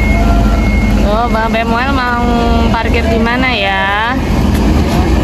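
A bus horn blares a loud, wavering musical tune.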